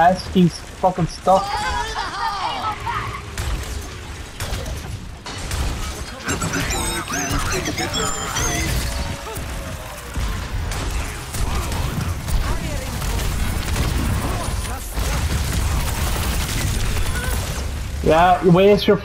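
Video game weapons fire rapid energy blasts and gunshots.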